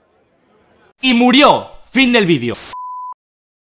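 A man speaks with animation into a microphone, close up.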